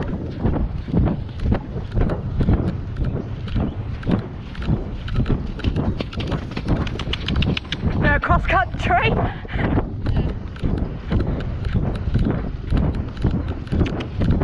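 Horse hooves thud steadily at a brisk trot on soft ground.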